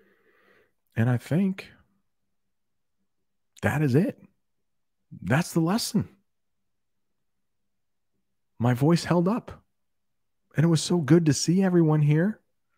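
A middle-aged man speaks calmly and clearly into a close microphone, in short phrases with pauses.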